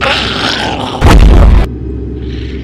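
A heavy blow lands with a loud thud.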